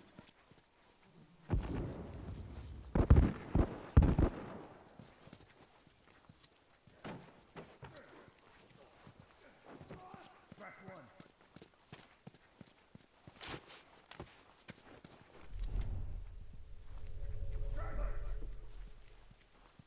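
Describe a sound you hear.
Footsteps hurry over hard ground.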